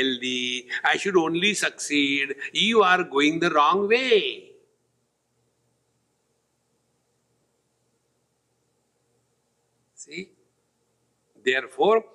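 An elderly man speaks calmly and closely into a microphone, with long pauses.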